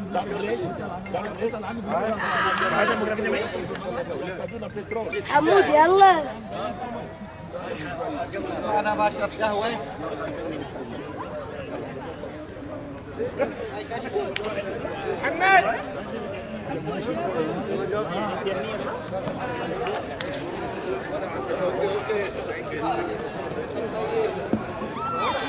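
Several men talk and laugh together close by, outdoors.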